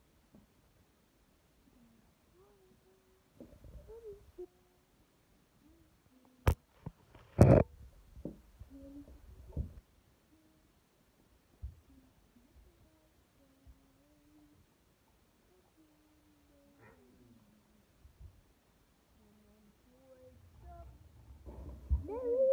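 Small plastic toy figures knock and clatter on a wooden floor.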